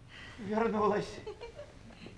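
A man speaks loudly with expression on a stage.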